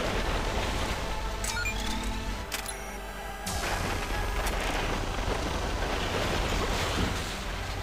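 A laser beam hums and crackles as it fires.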